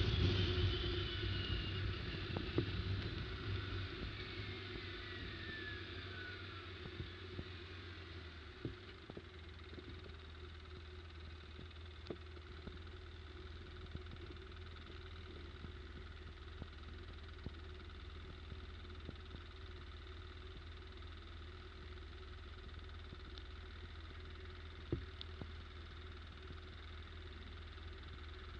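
Tyres squelch and rattle over a muddy, bumpy track.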